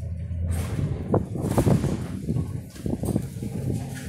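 A glass door opens and closes.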